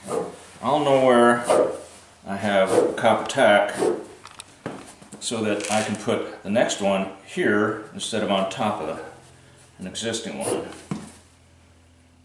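An elderly man talks calmly and close by.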